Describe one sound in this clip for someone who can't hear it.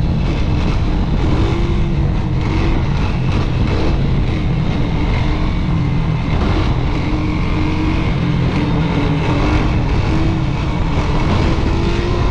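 A quad bike engine roars steadily up close.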